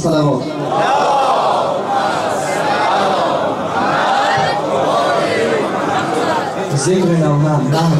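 A crowd of men chants together in a large echoing hall.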